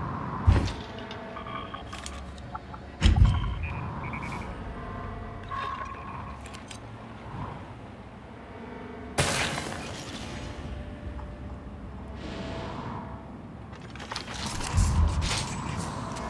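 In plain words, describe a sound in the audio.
A gun fires with loud, booming blasts.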